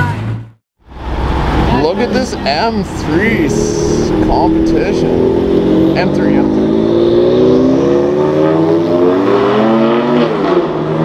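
A sports car engine revs and roars as the car accelerates past.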